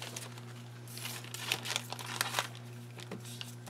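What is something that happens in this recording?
A plastic sheet crinkles as it is handled.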